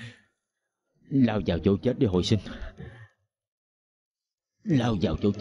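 A man speaks quietly and seriously nearby.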